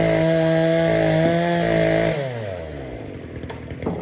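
An electric motor hums steadily, then winds down.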